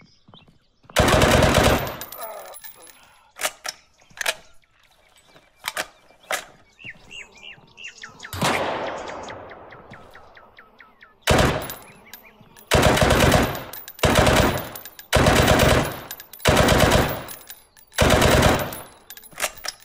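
A rifle fires loud bursts of shots that ring out with a long echo.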